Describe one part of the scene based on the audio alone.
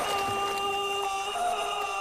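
A man screams in anguish.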